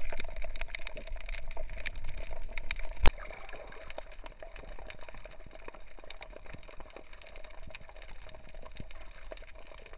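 Sharp clicks and crackles sound steadily under water around a reef.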